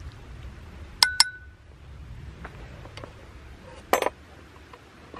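Metal utensils clink against a metal pot.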